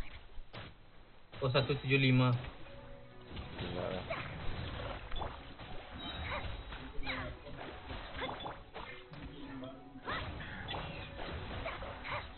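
Magical blasts crackle and burst in a fast fight.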